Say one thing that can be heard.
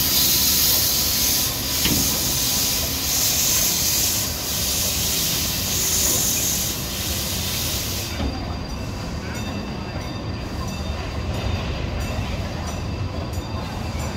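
A train rumbles and clanks slowly past close by.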